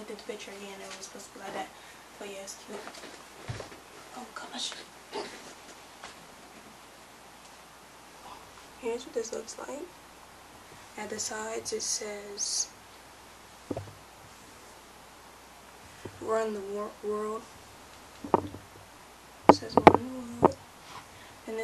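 A young girl sings along close by.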